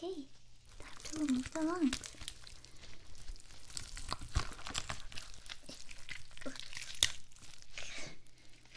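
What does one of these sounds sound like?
Gloved hands rub and crinkle close by.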